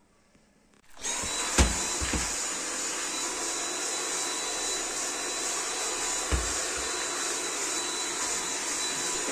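A handheld vacuum cleaner whirs steadily at close range.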